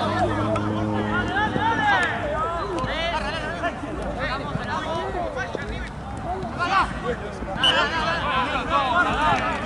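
Young men shout and call out to each other across an open outdoor field.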